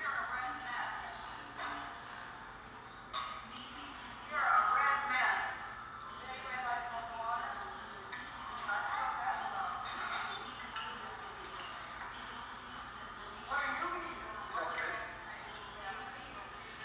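Several adults chat with animation nearby, heard through a television speaker.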